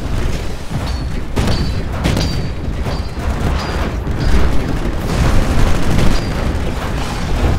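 Heavy gunfire rattles in rapid bursts.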